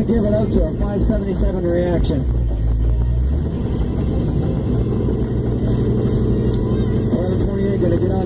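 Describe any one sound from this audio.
Tyres rumble steadily on the road.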